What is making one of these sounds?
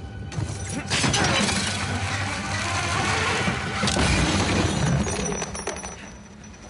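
Heavy wreckage crashes and rumbles loudly.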